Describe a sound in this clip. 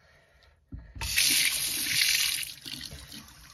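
Tap water runs onto a hand over a sink.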